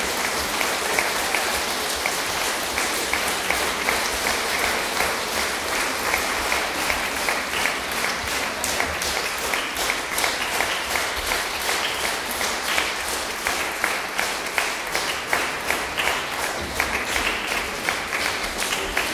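An audience applauds steadily in a large, echoing hall.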